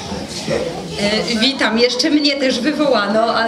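A woman speaks cheerfully close by.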